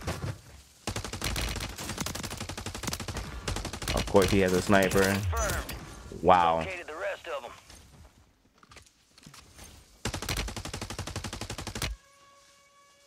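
A rifle fires in rapid bursts.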